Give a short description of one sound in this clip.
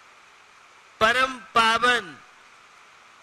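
An elderly man speaks into a microphone in a slow, chanting voice.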